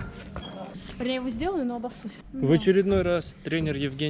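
A young man talks close up, with animation.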